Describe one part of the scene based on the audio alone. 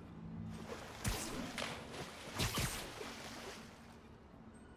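Water splashes loudly as a swimmer bursts up out of it.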